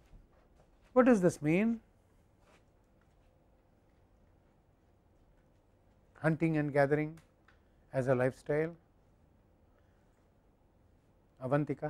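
An elderly man speaks calmly, close to a microphone.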